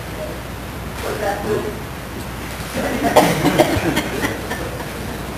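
A middle-aged man speaks calmly in a slightly echoing hall.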